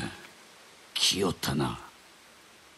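A man speaks briefly in a calm voice.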